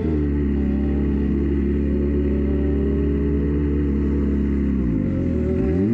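A race car engine idles with a deep, rough rumble.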